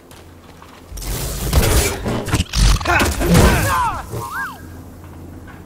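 A lightsaber swings and crackles in a fierce fight.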